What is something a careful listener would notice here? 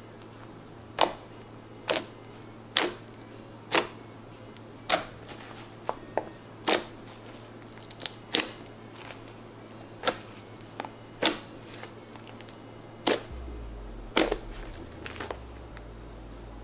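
Slime squishes and pops wetly under fingers.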